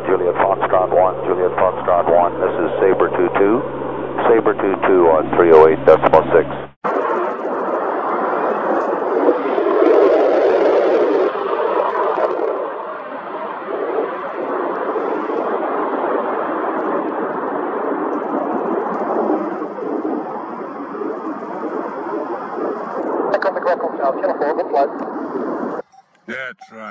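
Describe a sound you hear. A jet engine roars as a fighter jet takes off and climbs away.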